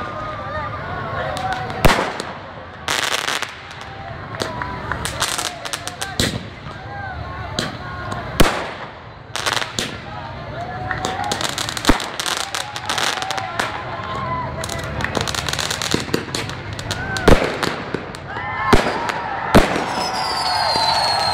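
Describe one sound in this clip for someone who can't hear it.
Fireworks whistle as they shoot upward.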